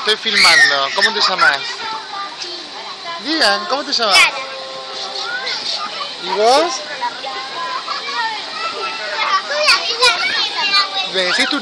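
Young girls chatter and squeal close by.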